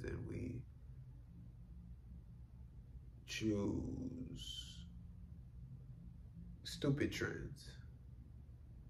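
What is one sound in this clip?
A young man speaks casually close by, in short bursts with pauses.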